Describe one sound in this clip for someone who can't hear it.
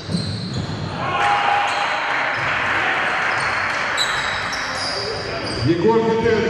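A crowd of spectators cheers.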